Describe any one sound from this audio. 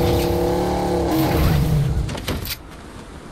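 A car engine hums and revs, then cuts off.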